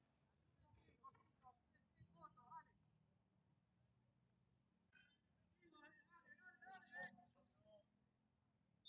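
Players shout faintly in the distance across an open field.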